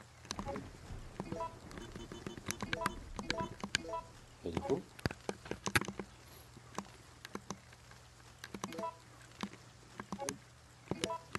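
Short electronic menu beeps chime repeatedly.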